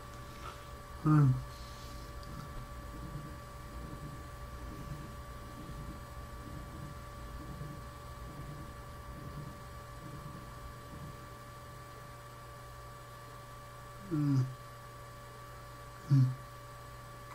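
A young man speaks in short, quiet phrases close to a microphone, with a few sudden loud outbursts.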